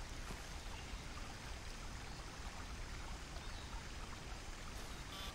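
Water laps gently against a shore.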